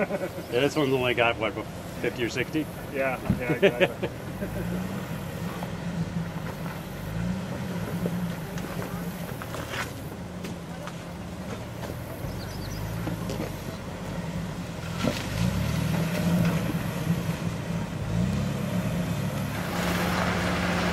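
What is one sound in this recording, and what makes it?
Tyres crunch and grind over loose rocks.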